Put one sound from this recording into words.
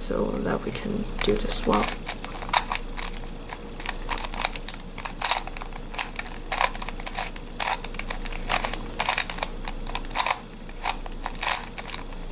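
Plastic puzzle pieces click and clack quickly as hands twist them.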